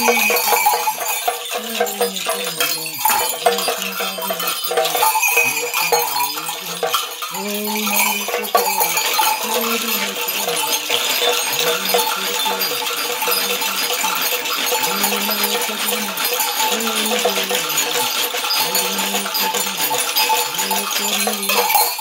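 Rattles shake and clatter rapidly.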